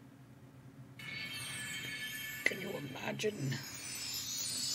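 Game music plays.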